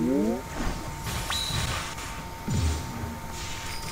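A heavy magical blast bursts and rumbles.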